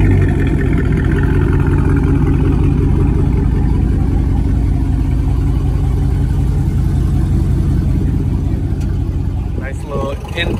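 A car engine idles with a deep, steady exhaust rumble close by.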